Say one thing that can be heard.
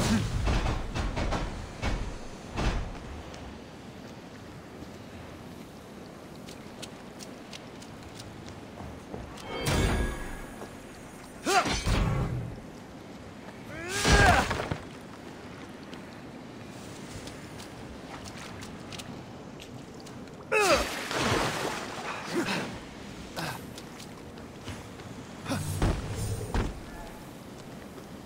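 Footsteps run on hard stone.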